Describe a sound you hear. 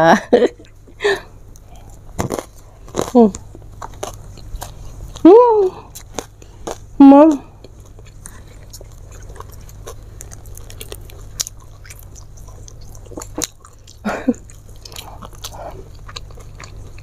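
A young woman chews food with wet smacking sounds.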